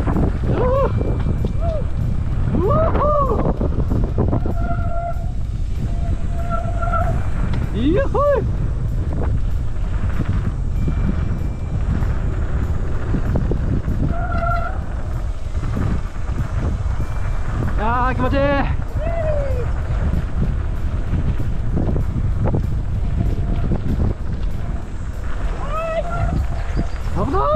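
Bicycle tyres crunch and rumble over a dirt trail.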